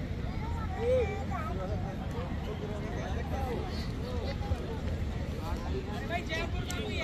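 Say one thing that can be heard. A crowd chatters outdoors at a distance.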